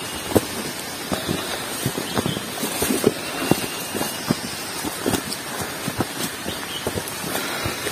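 Footsteps crunch and rustle through undergrowth on a forest trail.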